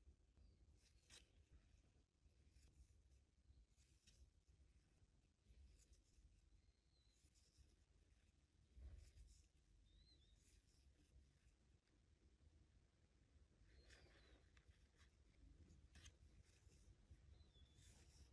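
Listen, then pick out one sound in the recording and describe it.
A crochet hook softly rustles and clicks through yarn.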